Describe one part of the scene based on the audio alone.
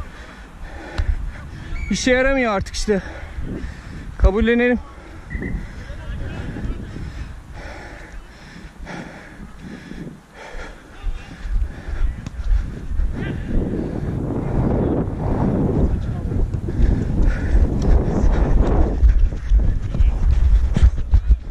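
Footsteps thud on artificial turf as a man runs.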